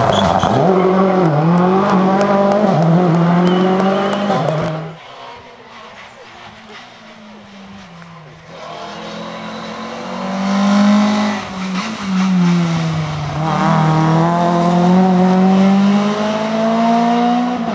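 Gravel sprays and crunches under spinning tyres.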